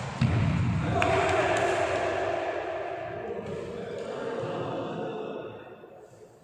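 Sports shoes squeak on a wooden court floor.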